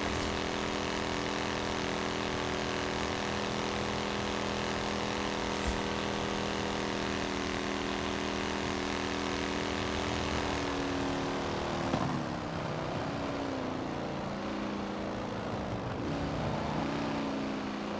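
A racing car engine drones steadily at high speed, then drops in pitch and sputters as the car slows.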